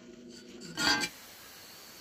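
An angle grinder whines as it cuts steel.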